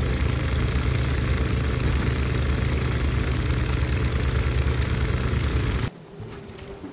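A boat's motor rumbles steadily.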